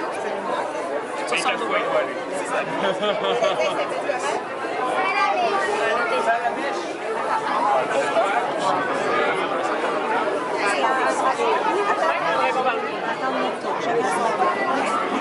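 Many voices of adults and children chatter nearby in a busy crowd.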